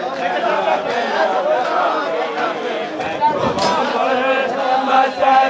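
A crowd of men talks and calls out outdoors.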